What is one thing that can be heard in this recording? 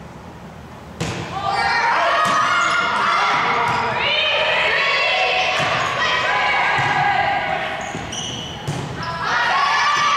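A crowd of young girls and spectators cheers and shouts loudly in an echoing gym.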